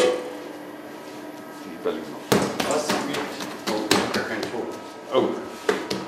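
A metal lid clanks shut on a machine.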